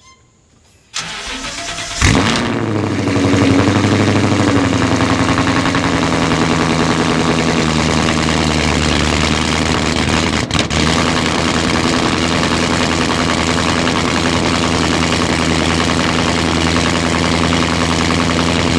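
A car engine starts with a roar and settles into a deep, rumbling idle.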